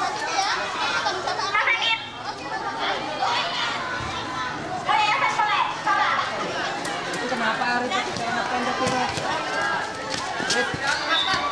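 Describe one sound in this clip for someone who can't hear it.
A crowd of young people shouts and cheers outdoors.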